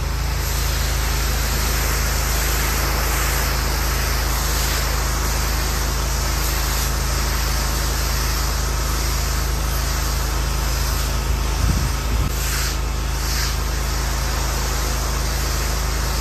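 A pressure washer sprays water onto paving with a steady, loud hiss.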